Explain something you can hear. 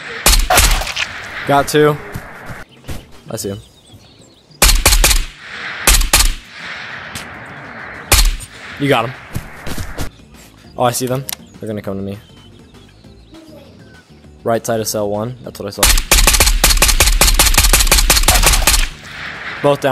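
A rifle fires in single shots and rapid bursts.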